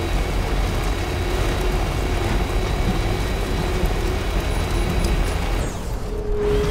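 A truck engine rumbles steadily as the truck drives along a road.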